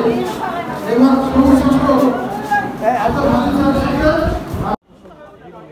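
A crowd of men and women talk loudly together.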